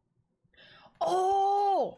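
A young woman exclaims loudly close to a microphone.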